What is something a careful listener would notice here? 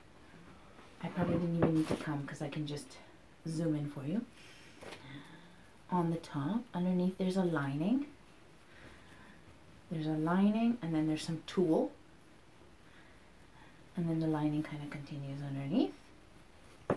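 A woman talks calmly and close by, in bursts with pauses.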